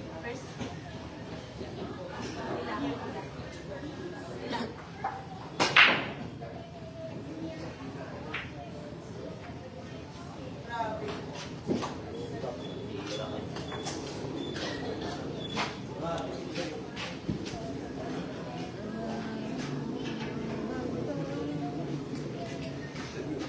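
A crowd of young men chatters in the background.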